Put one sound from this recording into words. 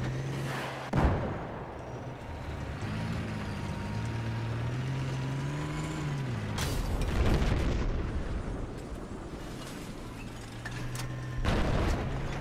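A tank cannon fires with loud booms.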